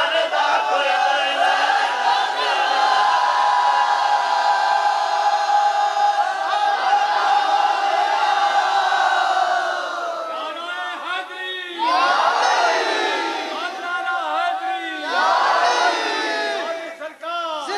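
A man sings a devotional chant loudly through a loudspeaker.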